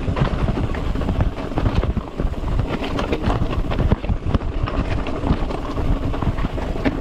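Bicycle tyres rattle and crunch over loose rocks.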